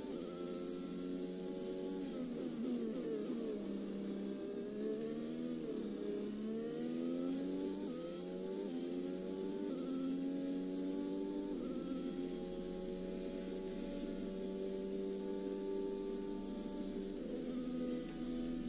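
A Formula One car engine revs high, its pitch rising and dropping through gear changes.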